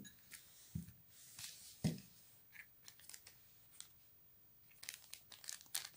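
A paper sachet crinkles and rustles.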